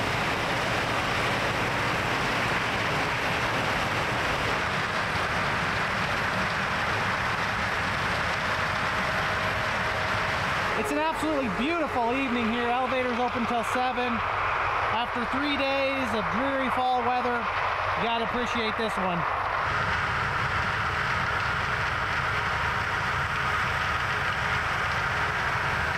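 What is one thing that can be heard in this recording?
A combine harvester engine rumbles steadily in the distance.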